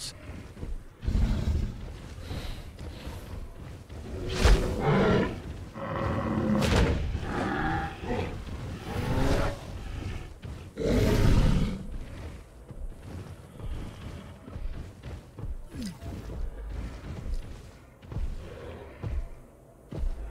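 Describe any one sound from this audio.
Large horned beasts bellow and grunt in deep, rumbling calls.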